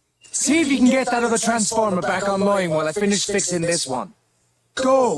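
A man speaks urgently and gruffly over a recording.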